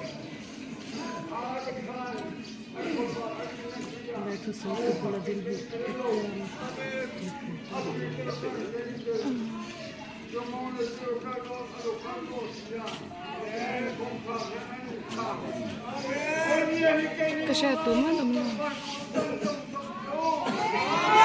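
A large group of men and women sings together outdoors.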